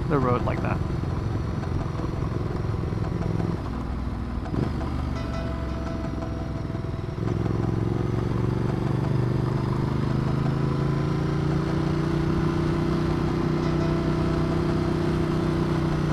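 A motorcycle engine hums steadily as it rides along, rising in pitch as it speeds up.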